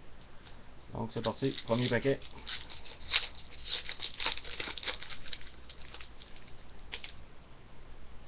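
Plastic wrappers crinkle and rustle as they are handled close by.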